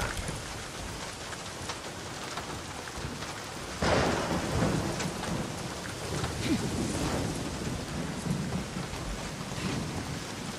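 Footsteps clang on a corrugated metal roof.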